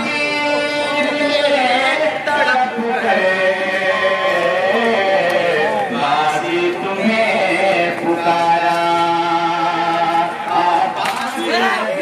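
A man chants a mournful lament loudly through a microphone and loudspeaker.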